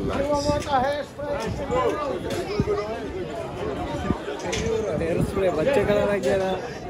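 A crowd of people chatter loudly outdoors.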